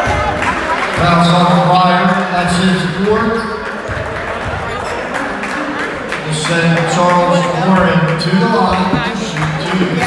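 A crowd of spectators cheers and chants loudly in a large echoing gym.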